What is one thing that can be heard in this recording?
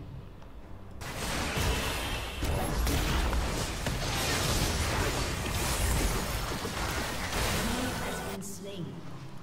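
Game spells and attacks crash and whoosh loudly.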